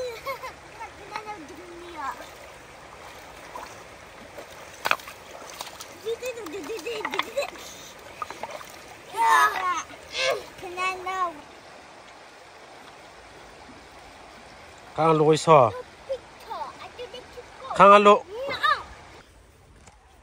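A shallow river rushes and babbles close by.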